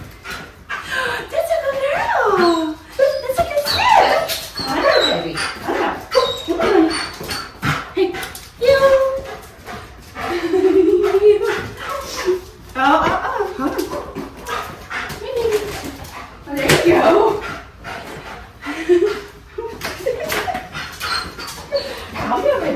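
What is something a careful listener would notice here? A young woman talks to a dog with animation, close by.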